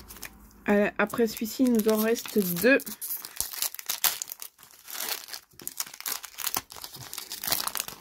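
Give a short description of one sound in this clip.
Foil wrappers crinkle and rustle as hands tear them open.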